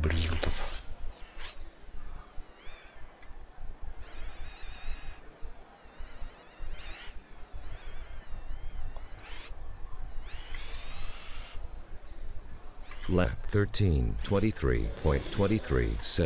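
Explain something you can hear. A small electric racing car whines as it speeds up and slows down.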